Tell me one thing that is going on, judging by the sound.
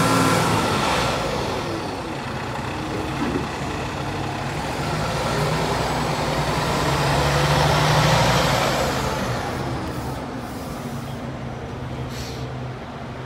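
A fire truck's engine revs as the truck pulls away.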